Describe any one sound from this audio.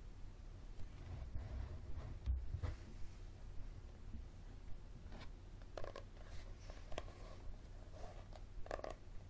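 Fingers scratch and rub on a book cover.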